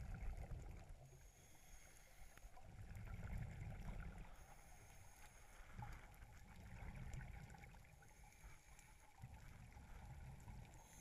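Scuba bubbles rumble and gurgle in muffled bursts underwater.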